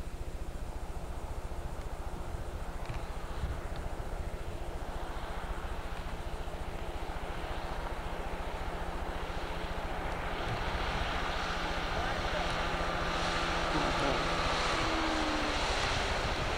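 Water hisses and splashes against a moving boat's hull.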